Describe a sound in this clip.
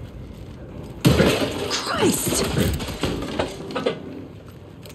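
A man exclaims sharply in alarm.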